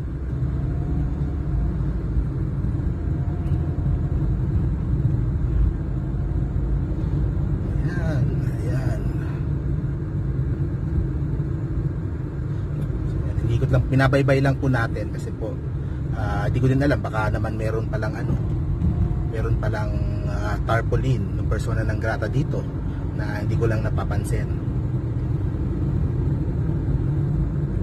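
A car engine hums steadily, heard from inside the car.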